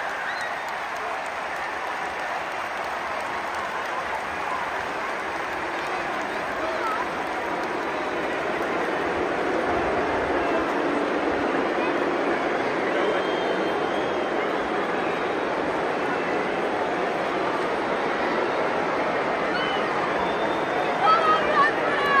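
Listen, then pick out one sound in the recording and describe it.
A large stadium crowd roars and chatters all around, growing louder.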